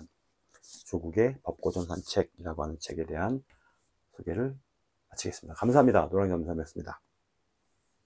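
A middle-aged man talks calmly and close to the microphone.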